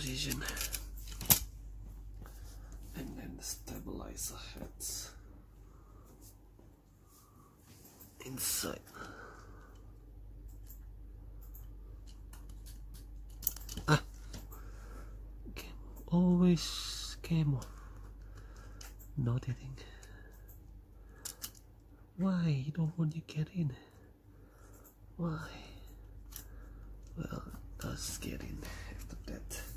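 Small plastic parts click and tap as they are handled close by.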